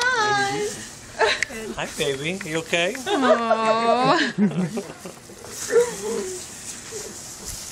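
A teenage girl laughs and talks excitedly.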